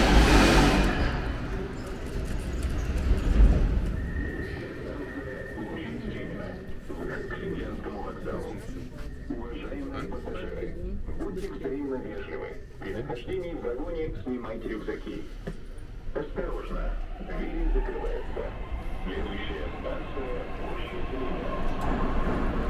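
A subway train rumbles and rattles along the track.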